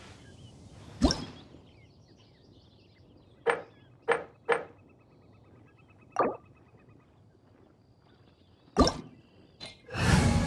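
Short game menu chimes sound as options are chosen.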